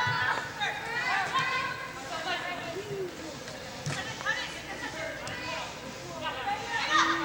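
Young women shout and call to each other in a large echoing hall.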